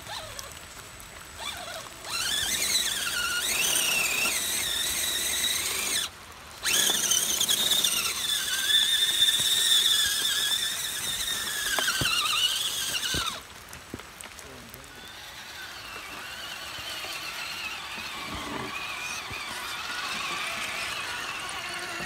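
Tyres squelch through wet mud.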